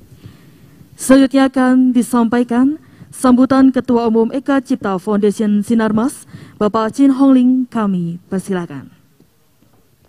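A woman speaks into a microphone over a loudspeaker, reading out calmly.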